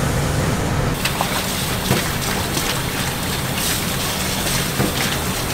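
Running water pours from a tap into a bowl.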